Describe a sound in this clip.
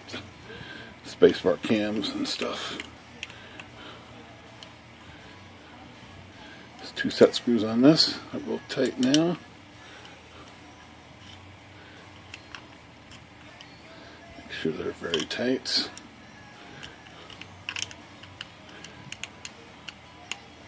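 A small metal tool clicks and scrapes against machine parts.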